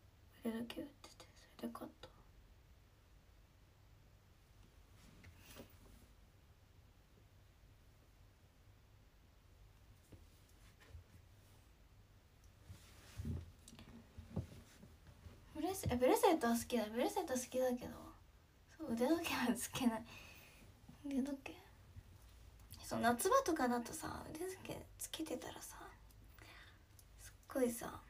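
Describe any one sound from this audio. A young woman speaks casually and close to a microphone, with pauses.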